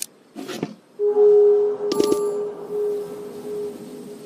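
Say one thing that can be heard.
A bright magical chime rings out and lingers.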